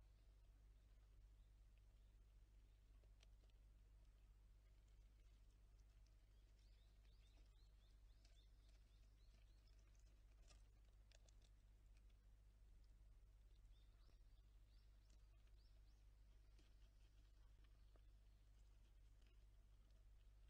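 A squirrel nibbles and scratches at seeds close by.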